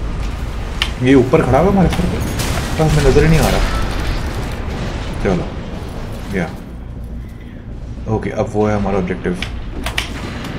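A young man speaks with animation into a headset microphone.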